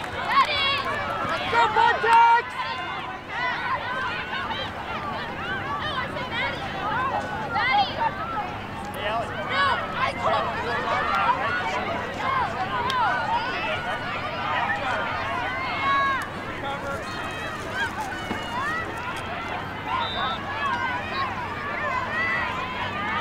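Many girls' voices chatter and shout excitedly outdoors.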